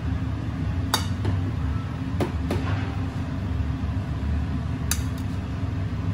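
Metal tongs clink against a steel bowl.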